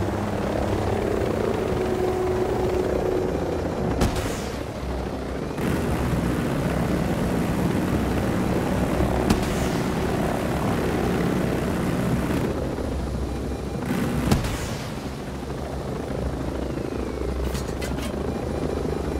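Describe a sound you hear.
A helicopter's rotor drones and thumps steadily close by.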